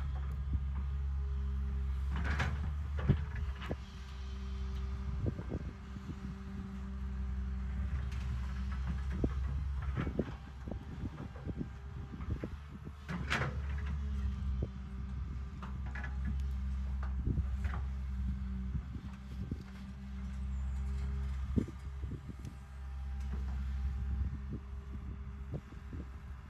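An excavator bucket scrapes and knocks against rocks and earth.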